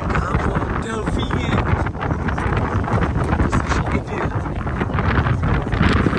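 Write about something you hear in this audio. Waves splash against a small boat's hull.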